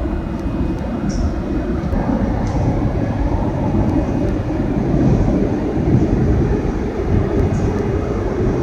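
A train rumbles steadily along the tracks through a tunnel.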